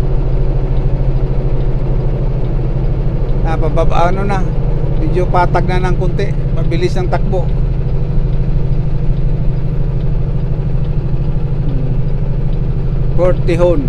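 A car's tyres roar steadily on a highway.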